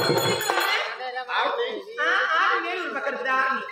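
A woman speaks loudly through a microphone.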